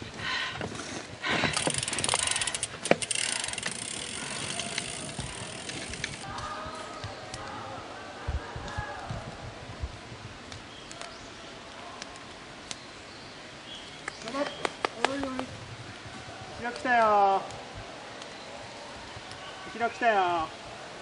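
A mountain bike rattles and crunches over a rough dirt trail close by.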